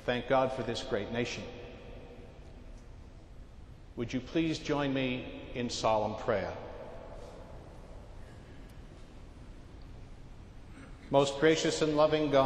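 An elderly man chants in a large, echoing hall, in short phrases with pauses.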